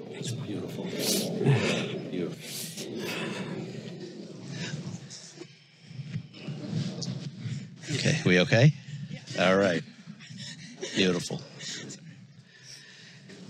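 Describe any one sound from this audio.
A middle-aged man speaks calmly, reading out.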